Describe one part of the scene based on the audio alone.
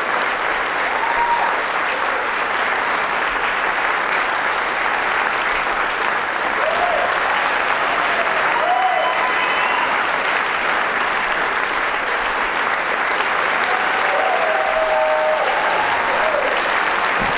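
Audience members whistle loudly now and then.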